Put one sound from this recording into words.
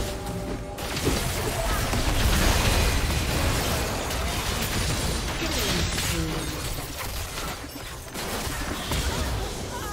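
Magic spells crackle and burst in a fast battle.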